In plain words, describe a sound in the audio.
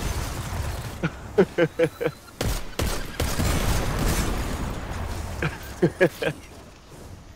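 A laser rifle fires in short rapid bursts.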